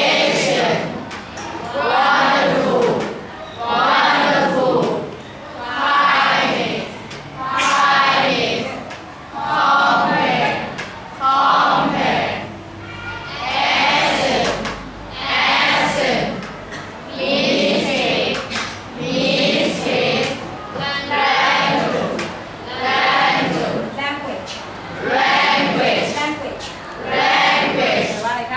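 A class of young students chants together in a steady rhythm.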